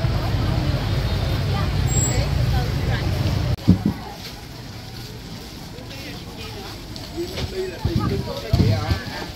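A crowd of people chatters in a busy outdoor street.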